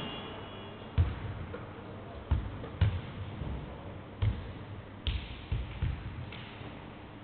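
A basketball bounces on a wooden court, echoing in a large hall.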